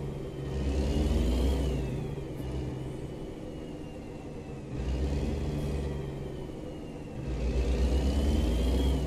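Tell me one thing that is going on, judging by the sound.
A truck engine hums and rises and falls as it revs through the gears.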